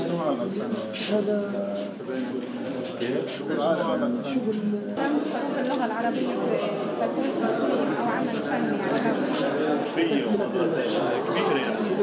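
Men talk calmly nearby in a small group.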